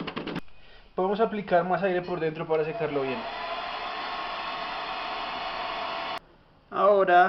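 A hair dryer blows with a steady whir.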